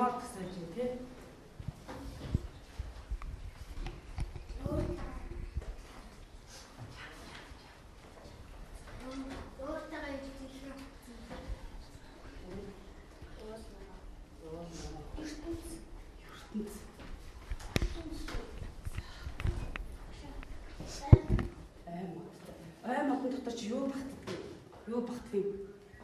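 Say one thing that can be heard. Children murmur and chatter in the background.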